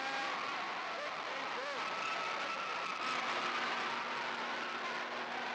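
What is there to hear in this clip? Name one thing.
A large crowd cheers and shouts loudly in an echoing gym.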